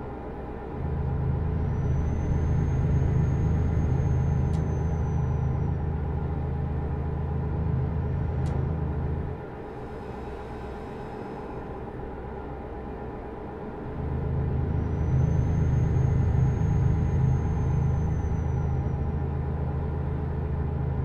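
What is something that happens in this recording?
A truck engine hums steadily, louder at times as it pulls harder.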